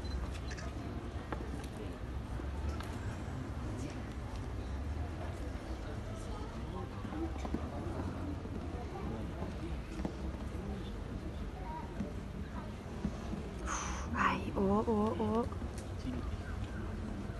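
A horse's hooves thud on soft dirt.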